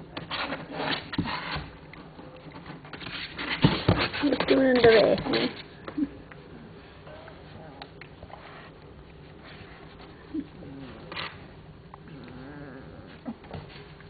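Puppies rustle and shuffle on a soft blanket.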